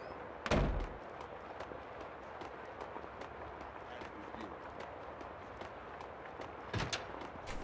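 Footsteps tap quickly along a hard floor.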